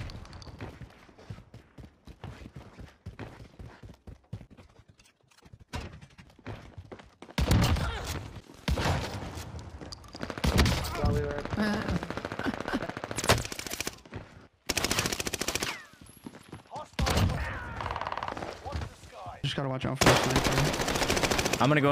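Gunshots fire in quick bursts.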